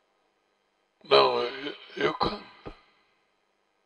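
An elderly man speaks calmly and close into a headset microphone.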